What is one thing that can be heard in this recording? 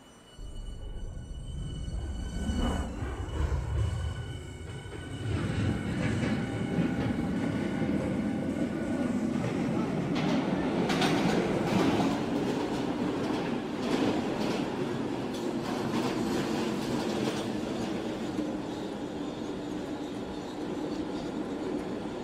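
A subway train rumbles and clatters along the tracks.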